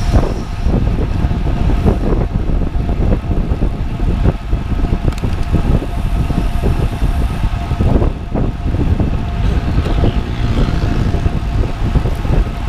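Wind buffets loudly and steadily against a microphone.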